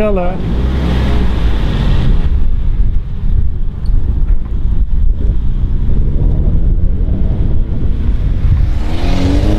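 A car engine rumbles steadily as an open car drives off.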